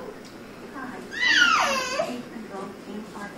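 A baby squeals in a high voice.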